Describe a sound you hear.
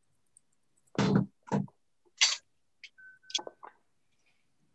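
Objects knock and clink against a countertop.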